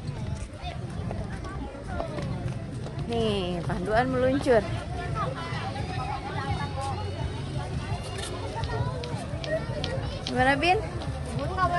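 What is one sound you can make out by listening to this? A crowd of people chatters around outdoors.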